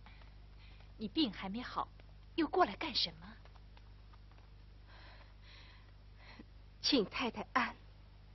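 Several women talk nearby in short, lively exchanges.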